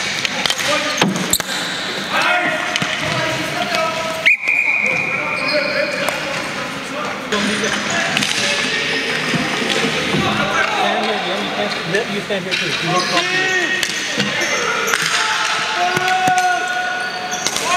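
Sticks clack against a ball and the floor in a large echoing hall.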